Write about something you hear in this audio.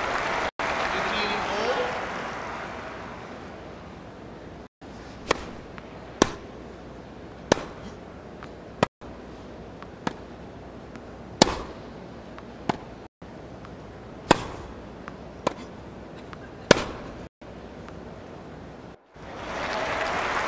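A crowd applauds and cheers in a large arena.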